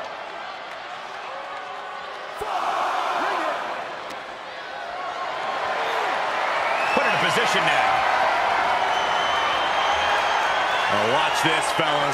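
A large crowd cheers and roars loudly in a big echoing arena.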